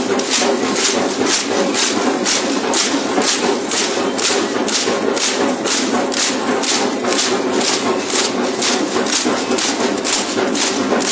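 Many dancers' ankle rattles shake in a fast, steady rhythm.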